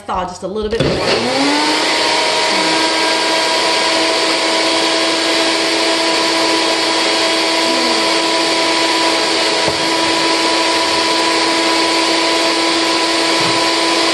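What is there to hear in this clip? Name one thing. A blender whirs loudly and steadily close by.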